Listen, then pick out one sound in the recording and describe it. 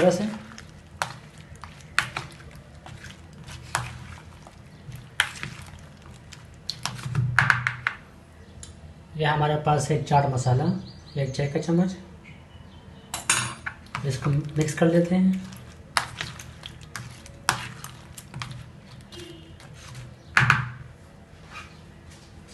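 A metal spoon clinks and scrapes against a plastic bowl.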